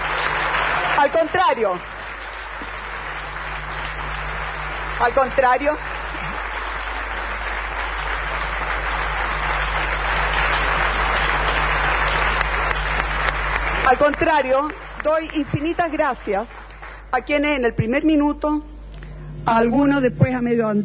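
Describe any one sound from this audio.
A woman speaks into a microphone over a loudspeaker, pausing between short phrases.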